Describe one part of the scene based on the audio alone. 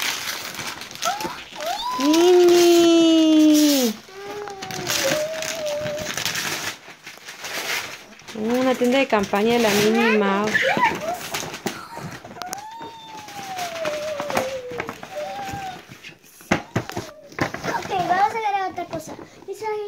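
A young girl squeals and talks excitedly close by.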